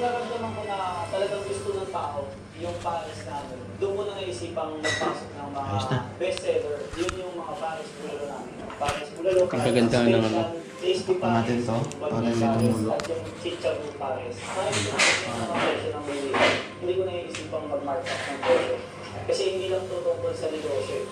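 A man talks steadily, close to the microphone.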